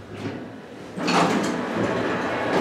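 Elevator doors rumble as they slide open.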